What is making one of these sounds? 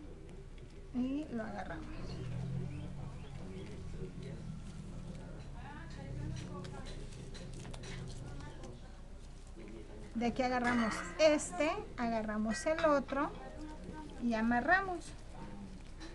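A woman speaks calmly close by.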